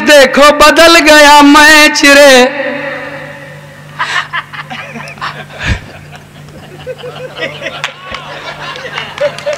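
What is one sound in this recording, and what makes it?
A man recites loudly in a melodic, sing-song voice through a microphone.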